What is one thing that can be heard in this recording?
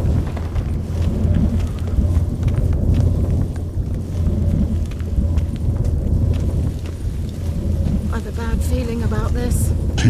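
Footsteps scuff on stone steps.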